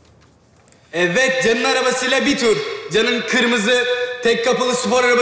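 A young man speaks loudly into a microphone.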